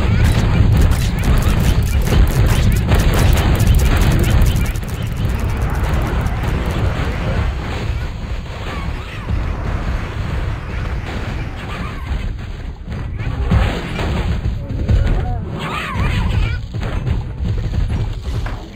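Cartoon zombies groan and shuffle in a dense crowd.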